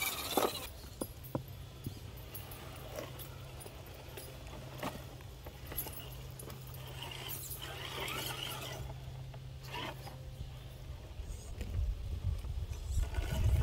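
A small electric motor whirs as a toy truck crawls over rocks.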